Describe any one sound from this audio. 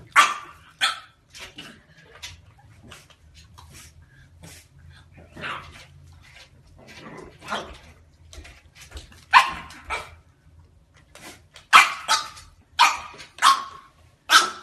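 A puppy's paws scrabble on a hard floor.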